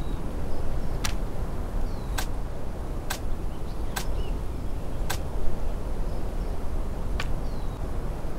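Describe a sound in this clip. Short clicks tick one after another.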